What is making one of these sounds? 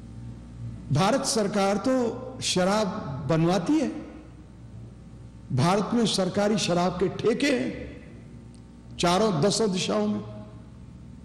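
An elderly man speaks calmly into a microphone, in phrases with pauses.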